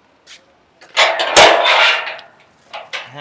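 A metal gate rattles and clanks.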